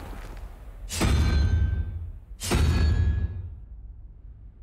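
A stone dial rolls with a shimmering magical chime.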